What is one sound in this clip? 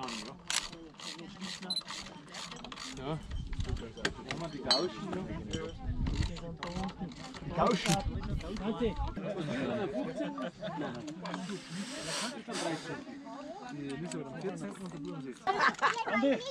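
A crowd of men and women chatters outdoors close by.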